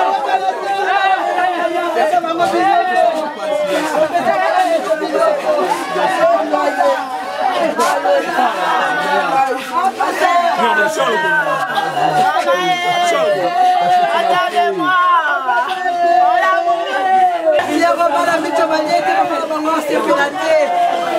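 A crowd of women and men talk and shout excitedly nearby, close up and overlapping.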